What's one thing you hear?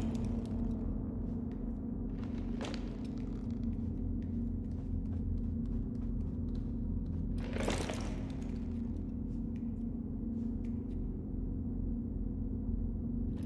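Heavy footsteps thud slowly on a hard floor.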